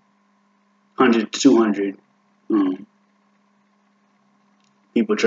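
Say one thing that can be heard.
A young man speaks calmly and close by, in short bursts.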